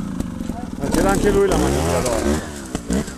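A motorcycle engine revs up as it pulls away.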